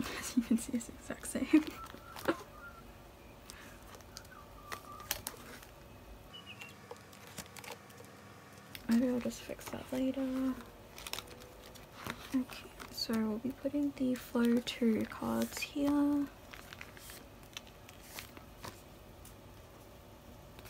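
Stiff cards tap and click against plastic.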